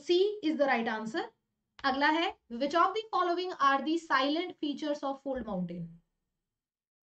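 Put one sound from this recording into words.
A young woman speaks clearly and with animation into a close microphone.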